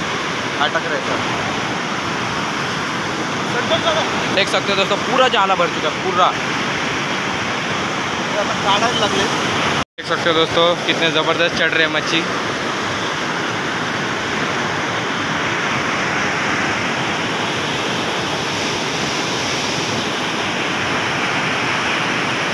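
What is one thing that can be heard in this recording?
Floodwater rushes and churns in fast, foaming rapids against a stone wall.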